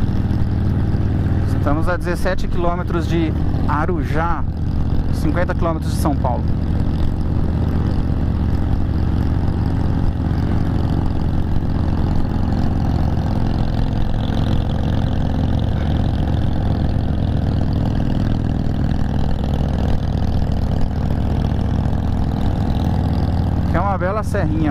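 A motorcycle engine rumbles steadily while riding at speed.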